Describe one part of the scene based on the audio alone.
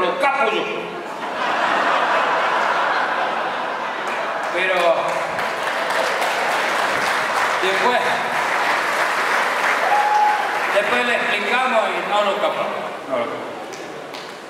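A middle-aged man speaks with animation into a microphone, amplified through loudspeakers.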